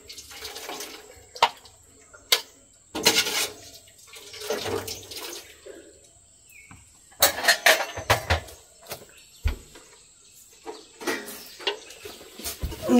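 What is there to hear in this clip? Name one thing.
A spoon clinks and scrapes in a metal pot.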